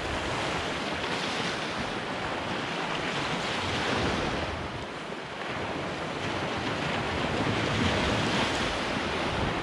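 Small waves wash steadily onto the shore and break in swells.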